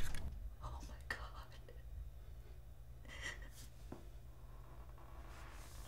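A middle-aged woman sobs quietly close by.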